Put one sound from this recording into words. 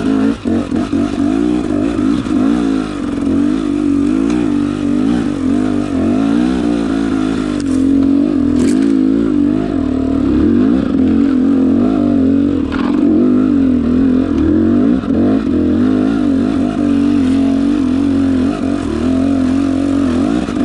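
A dirt bike engine revs and roars up close, rising and falling in pitch.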